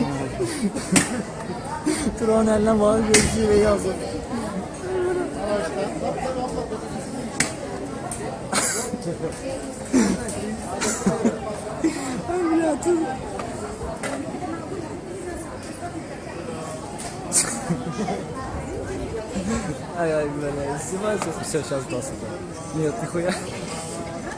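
A metal rod clangs against metal lids.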